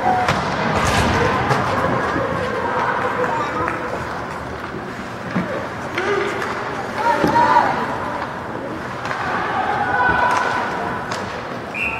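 Hockey sticks and pucks clack sharply on the ice.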